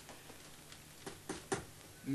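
A hammer taps on a shoe.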